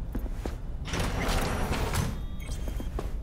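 A sliding metal door opens with a short whoosh.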